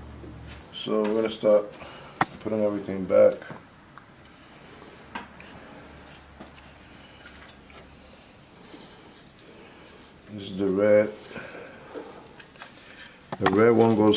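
Bubble wrap crinkles as a man handles it.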